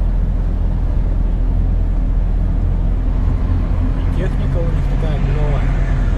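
A large truck rushes past close by.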